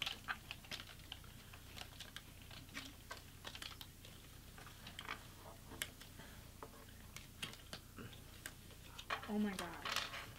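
Small plastic pieces click and tap on a table.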